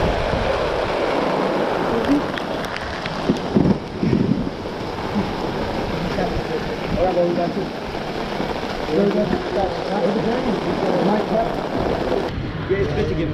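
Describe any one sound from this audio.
Wind rushes against a nearby microphone outdoors.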